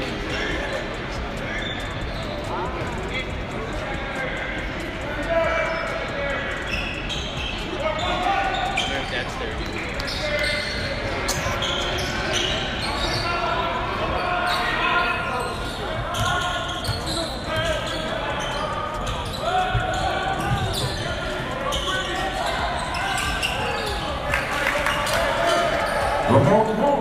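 A crowd murmurs and chatters throughout a large echoing gym.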